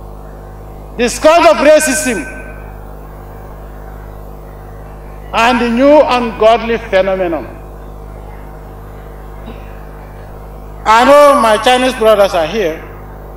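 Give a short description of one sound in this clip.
A man speaks slowly and forcefully into a microphone, in bursts with long pauses, over a loudspeaker.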